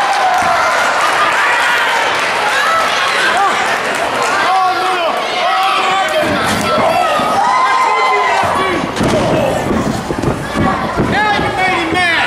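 Bodies thud against the ring mat and ropes.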